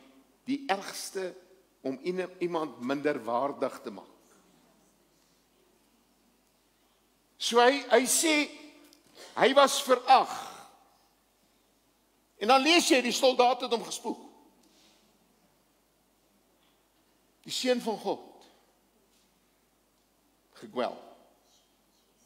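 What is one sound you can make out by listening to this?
An elderly man speaks with animation through a headset microphone, in bursts with pauses.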